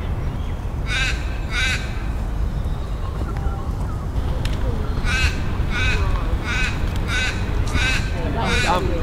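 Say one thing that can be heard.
A parrot chirps in short, sharp calls.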